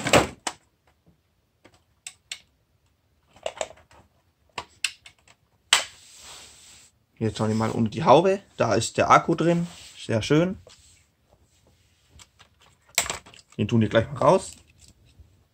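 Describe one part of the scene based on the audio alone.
Hard plastic parts click and tap as they are handled.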